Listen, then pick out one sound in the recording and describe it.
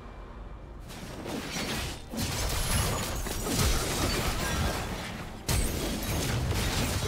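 Game spell effects whoosh and burst during a fight.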